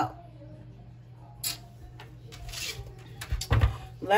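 A card slides softly across a table.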